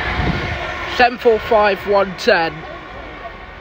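A train horn sounds several short blasts nearby.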